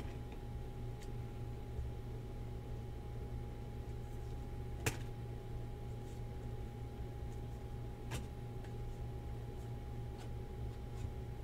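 Trading cards rustle and click as they are shuffled by hand.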